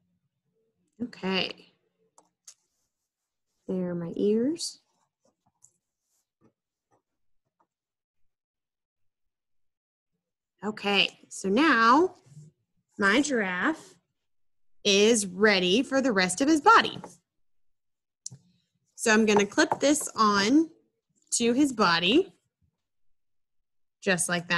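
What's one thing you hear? A woman talks calmly and close, as if over an online call.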